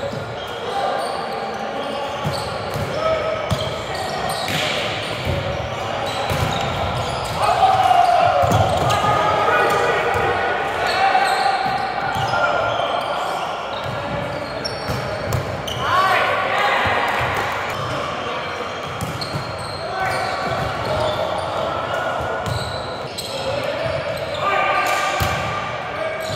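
Young men call out and shout to each other in a large echoing hall.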